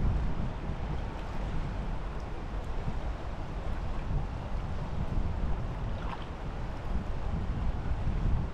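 A wide river flows and ripples steadily nearby.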